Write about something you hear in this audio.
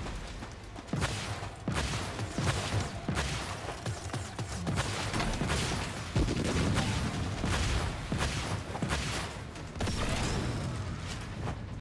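Guns fire in rapid bursts with sharp blasts.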